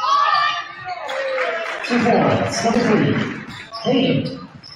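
A crowd cheers loudly in a large echoing gym.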